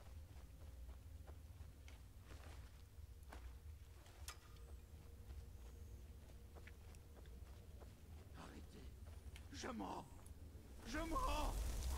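Fire flickers and crackles softly.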